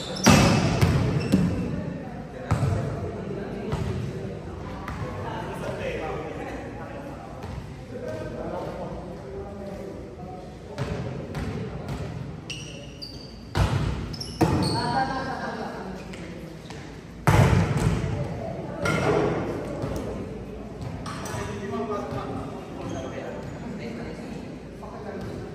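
A volleyball is struck with sharp smacks in a large echoing hall.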